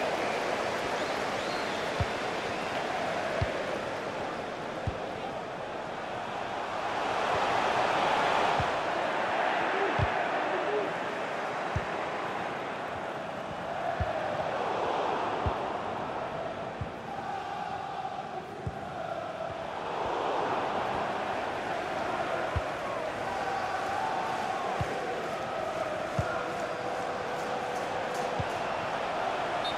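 A large stadium crowd roars and chants steadily, swelling at times.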